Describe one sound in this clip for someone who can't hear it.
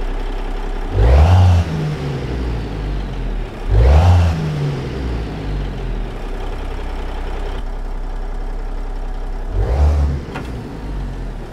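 A truck engine revs up loudly a few times and settles back.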